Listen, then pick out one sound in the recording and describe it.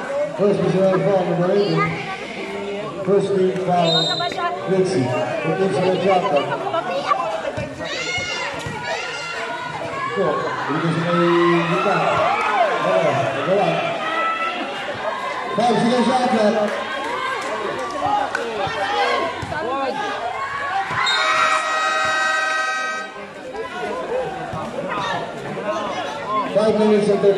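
A crowd of spectators chatters and cheers loudly nearby.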